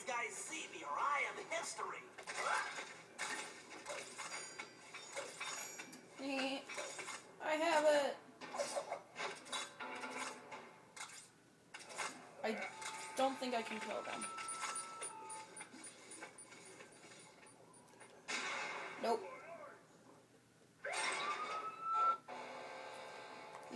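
Video game sound effects and music play from a television loudspeaker.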